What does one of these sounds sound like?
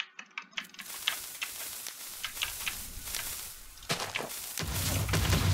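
A lit fuse hisses.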